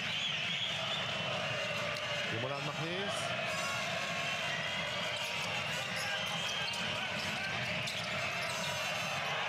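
Basketball shoes squeak sharply on a wooden court.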